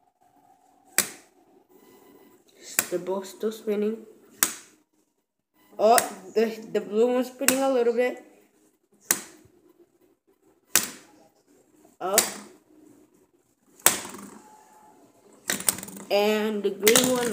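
Plastic spinners clack and tap on a hard tabletop.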